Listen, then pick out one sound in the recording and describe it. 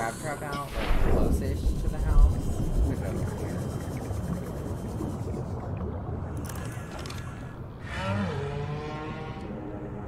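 A vehicle hums steadily underwater.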